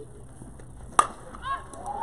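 A metal bat strikes a softball with a sharp ping.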